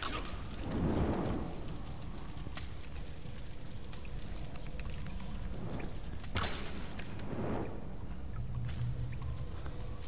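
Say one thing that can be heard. Fire crackles and burns.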